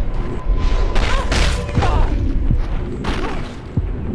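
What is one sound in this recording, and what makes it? Heavy blows land with dull thuds.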